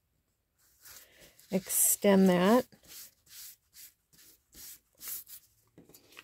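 Hands rub and smooth down paper with a soft rustle.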